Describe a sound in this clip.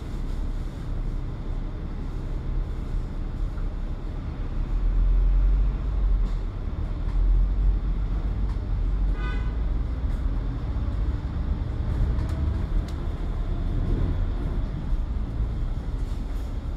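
A bus engine rumbles close by, then the bus pulls away.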